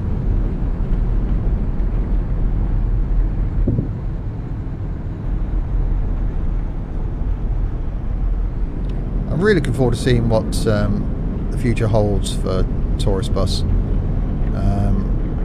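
A bus engine rumbles steadily as the bus drives along.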